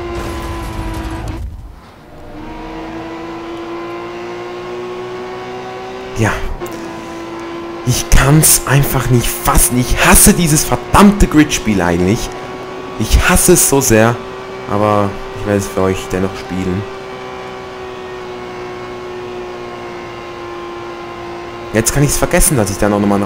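A racing car engine drones at high revs, briefly dipping as it shifts gear.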